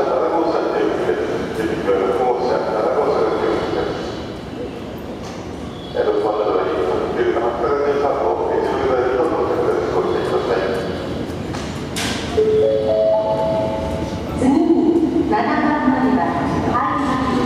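Electric traction motors on an express train whine as the train slows.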